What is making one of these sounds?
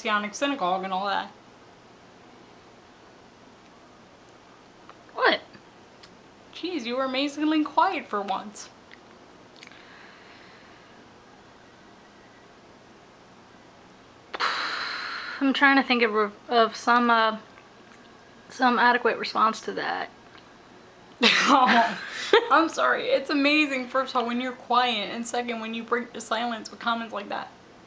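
A young woman talks close by, in short bursts with pauses.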